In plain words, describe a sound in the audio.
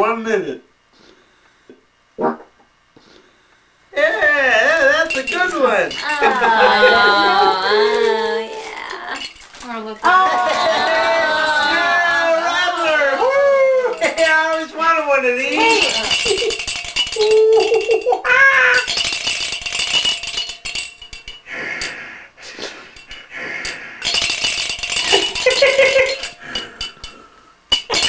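A man laughs loudly nearby.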